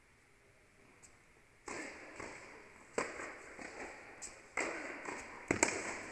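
A tennis ball is struck with a racket and bounces, echoing in a large hall.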